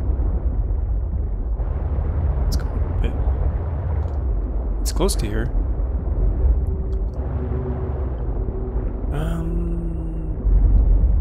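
A small submersible hums and rumbles steadily as it glides underwater.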